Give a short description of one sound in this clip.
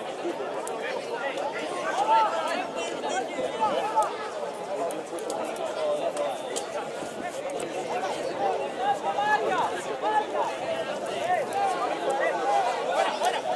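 Several men shout and call out across an open field outdoors.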